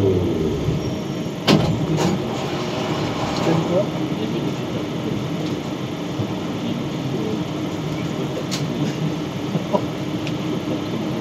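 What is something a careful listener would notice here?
A train rumbles steadily through a tunnel.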